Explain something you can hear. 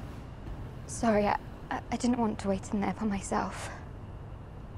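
A young woman speaks softly and apologetically, close by.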